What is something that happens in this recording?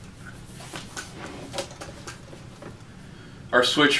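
Metal latches click open.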